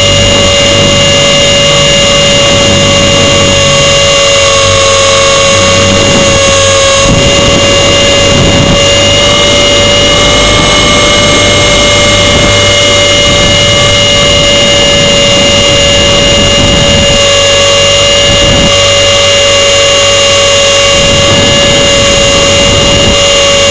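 A small propeller motor whines loudly and steadily close by.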